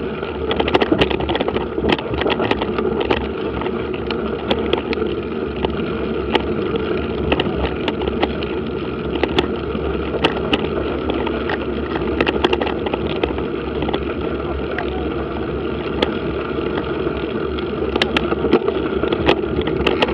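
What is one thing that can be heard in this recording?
Tyres roll and crunch over a dirt track.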